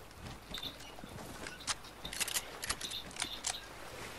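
Water splashes as someone wades and swims.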